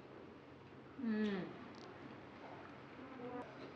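A young woman speaks with animation up close.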